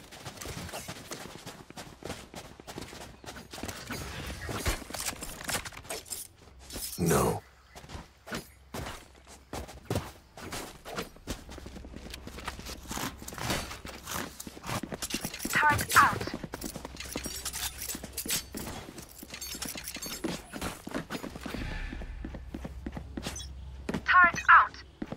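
Game weapons click, clink and rattle as they are handled.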